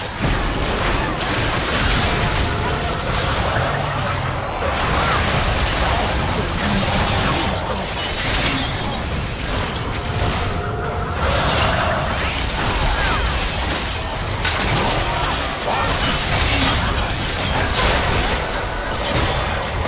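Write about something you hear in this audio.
Game spell effects whoosh and crackle in a battle.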